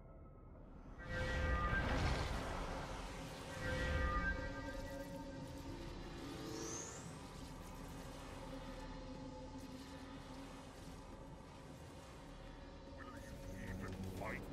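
Game battle effects burst and roar loudly.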